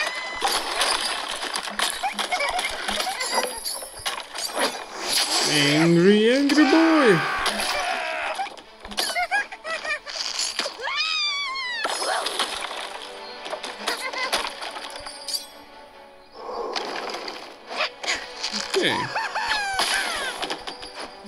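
Wooden and stone blocks crash and break apart.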